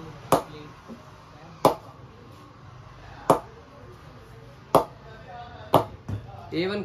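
A ball knocks sharply against a wooden bat several times.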